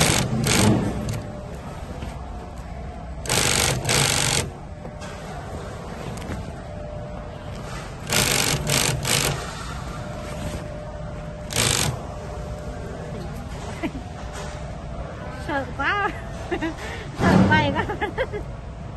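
A sewing machine whirs in short bursts of stitching.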